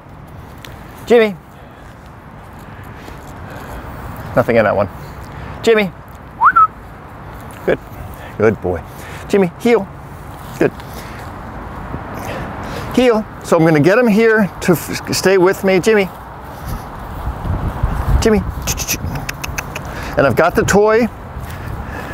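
A man gives short commands to a dog.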